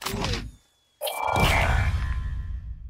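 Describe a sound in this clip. A game's final chime rings out and fades.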